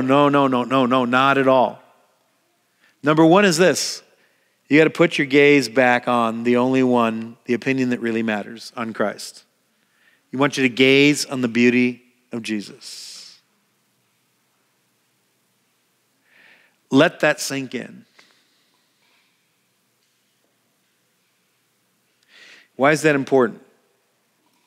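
A middle-aged man speaks with animation into a headset microphone.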